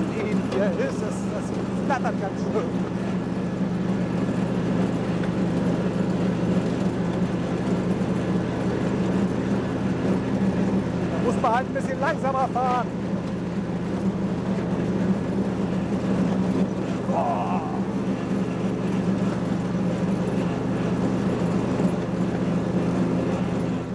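Mower blades cut through tall grass.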